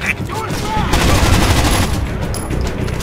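A rifle fires a burst in a video game.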